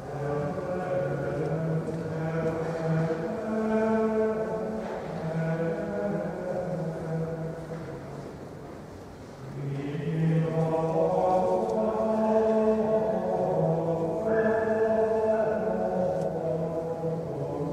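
A man chants slowly in a large echoing hall.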